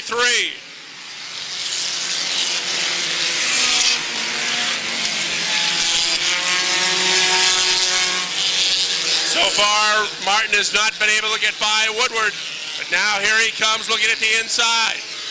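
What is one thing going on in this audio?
Many racing car engines roar and rev together, outdoors.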